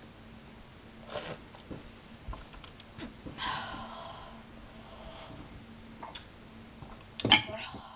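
A young boy coughs and splutters close to the microphone.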